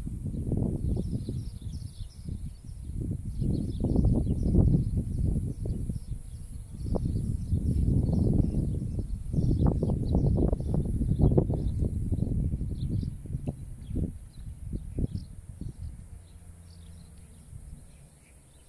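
Gusty wind rumbles loudly outdoors.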